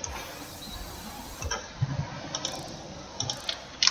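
A hammer clangs against metal.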